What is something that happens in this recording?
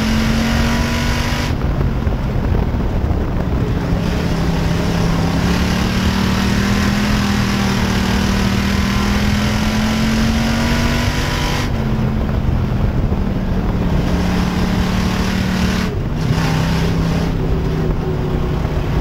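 A race car engine roars loudly up close, its pitch rising and falling as the driver accelerates and lifts.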